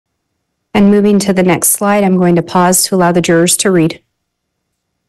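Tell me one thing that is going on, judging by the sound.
A woman speaks steadily through an online call, then falls silent.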